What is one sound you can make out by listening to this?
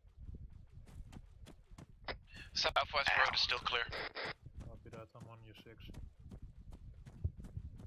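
Footsteps crunch on dry, rocky ground.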